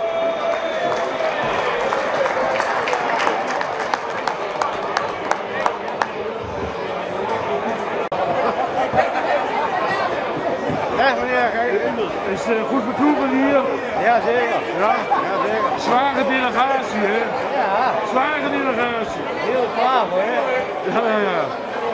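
A large crowd chatters in a big echoing tent.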